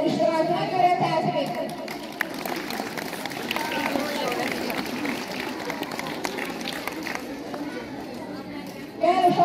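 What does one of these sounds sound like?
A group of children chatter and call out in the open air.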